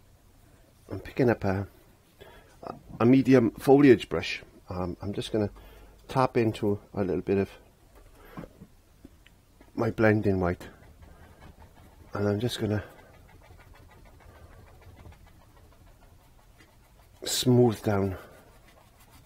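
A man talks calmly and close by, in short phrases.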